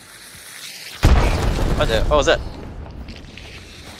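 A gun fires a single loud shot nearby.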